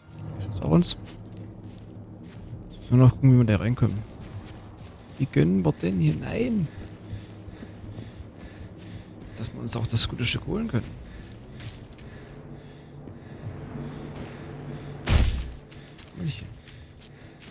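Footsteps crunch slowly on a forest path.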